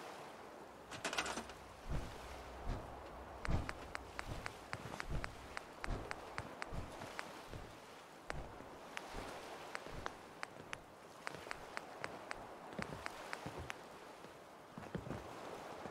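Soft electronic menu clicks tick quickly, one after another.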